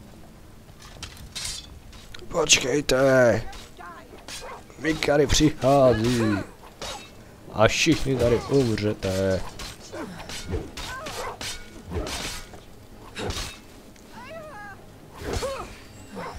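Sword blows clash and thud.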